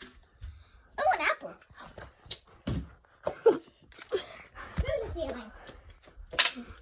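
A young child talks excitedly nearby.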